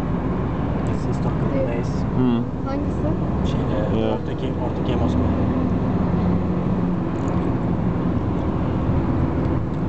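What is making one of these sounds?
A vehicle's engine hums steadily as it drives along.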